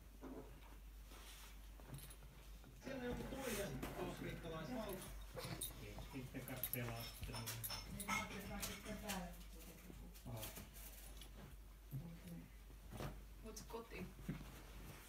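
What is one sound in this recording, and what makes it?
A dog scratches and paws at a rustling blanket.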